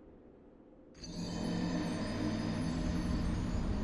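A deep, somber musical tone swells and holds.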